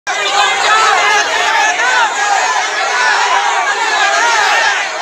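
A large crowd of men and women shouts and chants loudly, close by.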